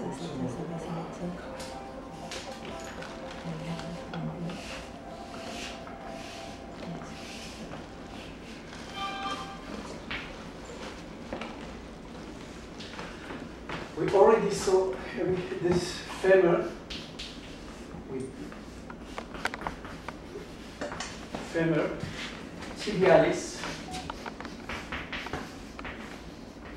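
Chalk scratches and scrapes against a wall in quick strokes.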